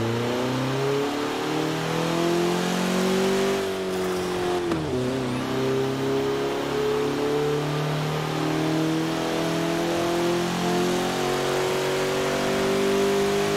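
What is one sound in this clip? A car engine revs and drones steadily, rising in pitch as it speeds up.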